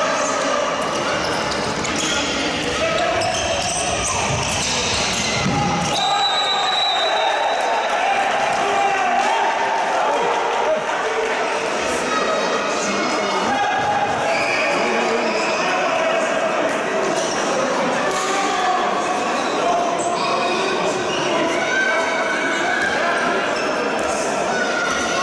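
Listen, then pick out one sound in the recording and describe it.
Spectators chatter and shout in an echoing sports hall.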